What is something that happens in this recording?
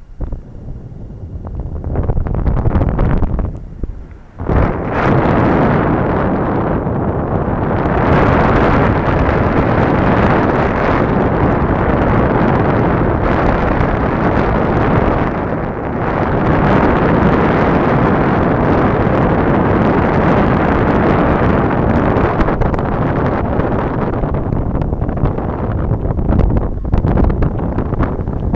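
Wind roars loudly and steadily against a microphone in flight.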